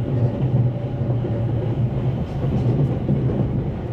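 A passing train rushes by close outside.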